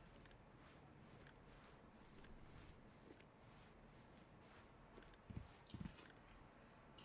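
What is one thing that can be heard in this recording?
Footsteps crunch steadily on dry ground.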